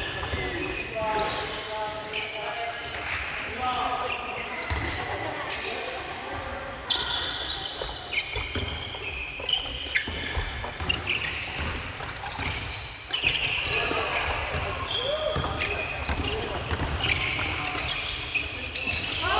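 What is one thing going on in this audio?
Badminton rackets hit shuttlecocks in a large echoing hall.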